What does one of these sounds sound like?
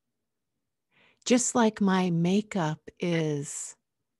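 A woman speaks softly and expressively into a close microphone.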